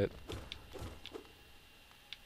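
A blade swishes through the air in quick slashes.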